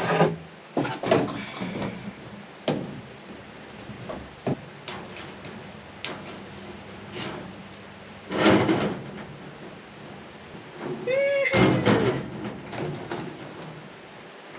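Wire mesh rattles and scrapes as it is handled.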